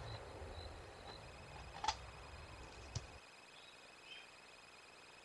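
A young wild cat chirps in short, high calls.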